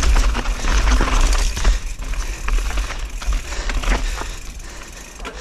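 A bicycle frame clatters over bumps.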